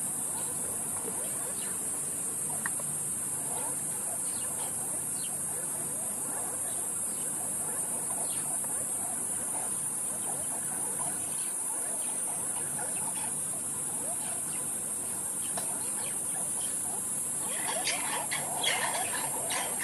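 A pack of mongooses chirps and squeaks nearby, getting busier toward the end.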